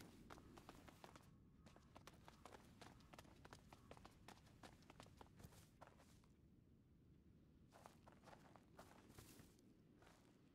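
Footsteps tap on stone and dirt.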